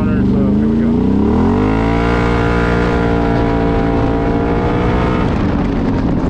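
An engine revs up and rises in pitch.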